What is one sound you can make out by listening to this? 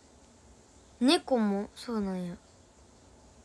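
A young woman speaks briefly in a high, sing-song voice close by.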